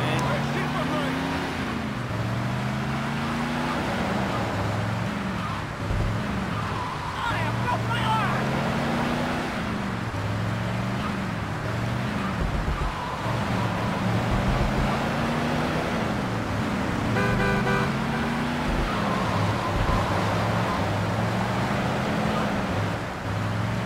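A car engine hums steadily as a car drives along a street.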